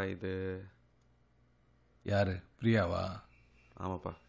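A middle-aged man speaks with surprise, close by.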